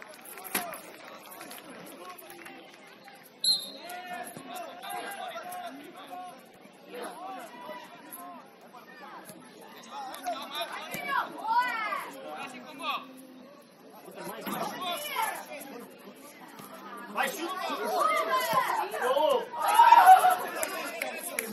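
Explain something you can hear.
Young children shout and call to each other outdoors on an open field.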